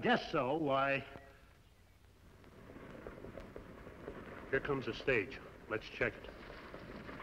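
A gruff older man speaks nearby.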